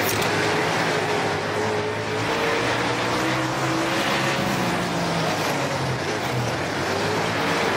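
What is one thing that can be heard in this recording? Tyres hiss and spray over wet dirt.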